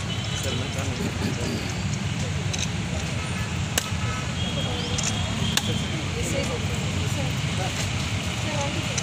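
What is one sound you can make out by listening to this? A crowd murmurs nearby outdoors.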